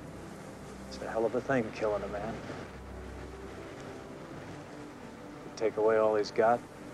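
An elderly man speaks slowly in a low, gravelly voice.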